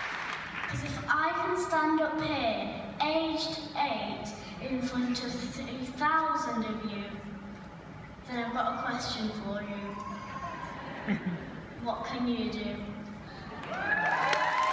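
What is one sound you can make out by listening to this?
A young boy speaks confidently through a microphone in a large echoing hall.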